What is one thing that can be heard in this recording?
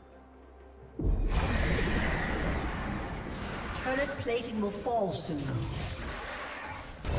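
Fantasy game spell effects whoosh and crackle in a battle.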